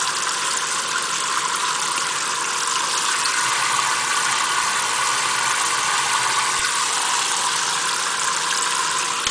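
Water from a tap sprays steadily into a metal sink.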